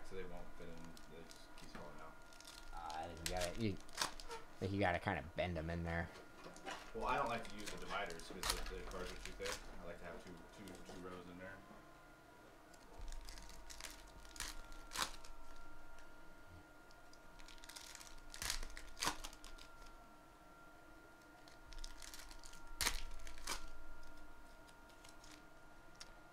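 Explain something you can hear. Foil wrappers crinkle and tear as packs are opened.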